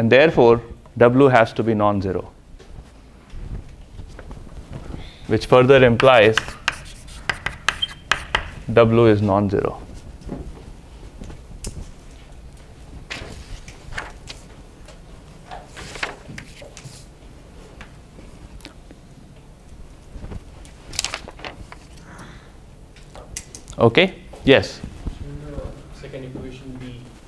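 A man speaks in a lecture voice in a large room with some echo.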